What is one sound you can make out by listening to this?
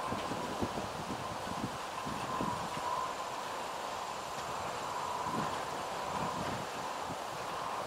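A freight train rumbles and clatters steadily along the tracks in the distance.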